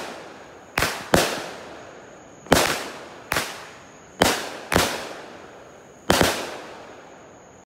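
Fireworks burst with loud, sharp bangs that echo away.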